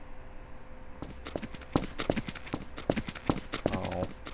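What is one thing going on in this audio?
Footsteps thud on hard ground at a quick pace.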